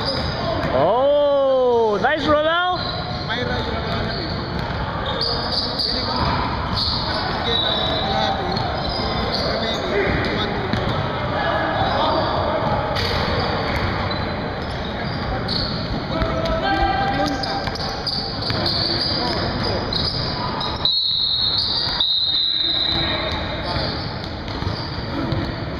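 Men shout and call out to each other in a large echoing gym.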